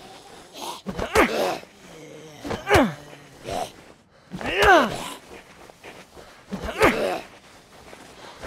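A zombie snarls and shrieks loudly.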